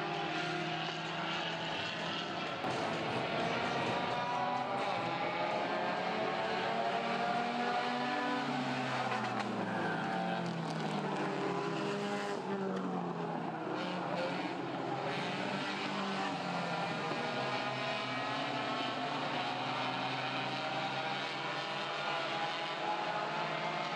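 Several race car engines roar and whine, rising and falling as they pass.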